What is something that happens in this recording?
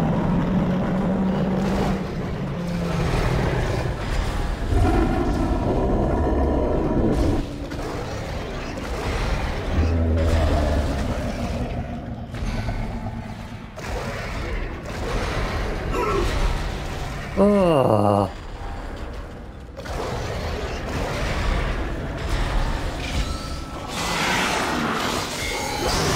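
Heavy boots stomp with dull thuds.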